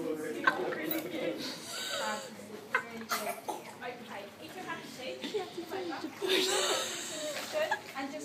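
Adults and children talk and call out in an echoing indoor pool.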